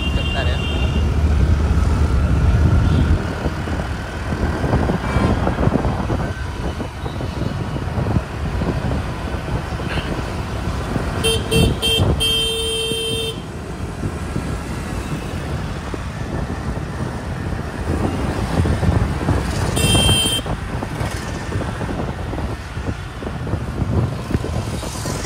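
Wind rumbles steadily past a moving motorbike.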